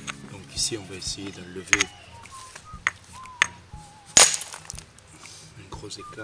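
A stone knocks sharply against another stone.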